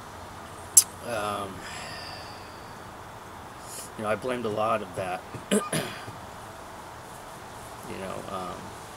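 A man speaks calmly and hesitantly at close range.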